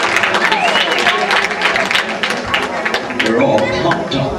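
An audience applauds and cheers in a large room.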